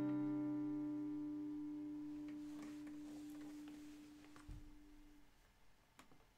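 A guitar chord rings out and slowly fades.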